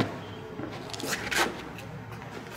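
A bag thumps down onto stone.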